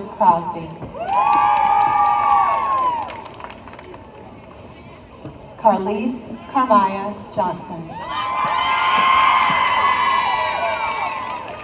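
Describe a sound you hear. A crowd cheers and whoops loudly outdoors.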